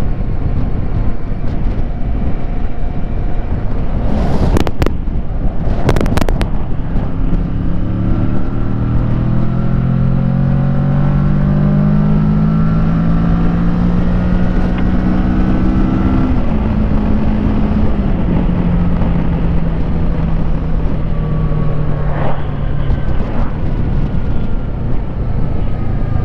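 Wind roars loudly past a moving motorcycle.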